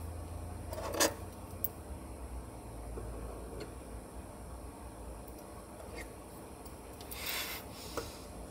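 A spoon clinks against a small dish.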